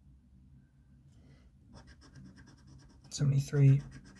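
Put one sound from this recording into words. A coin scratches at a scratch card.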